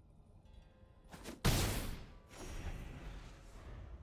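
A magical whoosh sounds as a turn changes.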